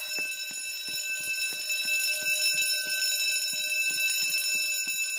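An alarm rings steadily in the background.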